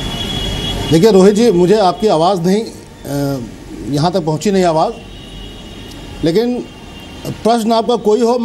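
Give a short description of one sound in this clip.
A middle-aged man argues loudly and with animation through a microphone.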